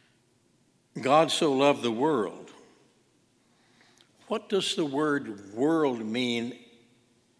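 An elderly man speaks slowly and clearly into a microphone in a reverberant room.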